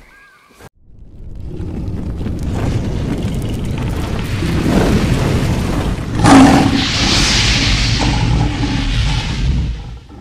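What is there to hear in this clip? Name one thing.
Flames roar and whoosh, swelling louder.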